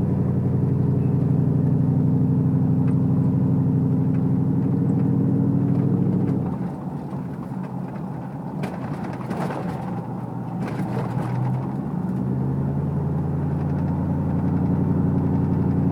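Tyres crunch and rumble over a dirt road.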